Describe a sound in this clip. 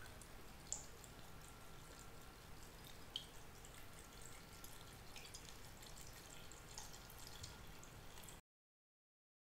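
Liquid pours softly from a bottle into a jar.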